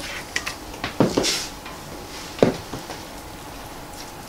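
A spoon scrapes and spreads food in a ceramic dish.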